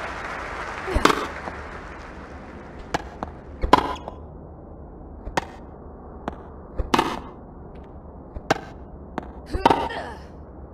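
A tennis ball is struck with a racket.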